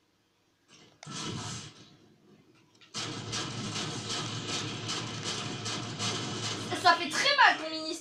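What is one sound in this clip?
Video game gunfire and effects play through a television speaker.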